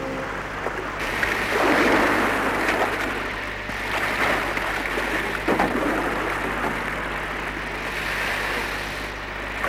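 Waves crash and roar against rocks.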